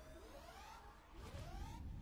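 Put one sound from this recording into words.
A blast booms loudly.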